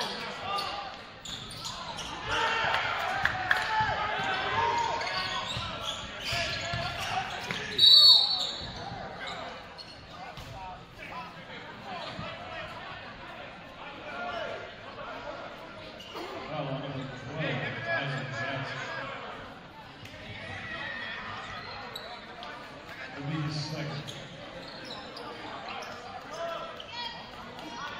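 A crowd cheers and murmurs in an echoing gym.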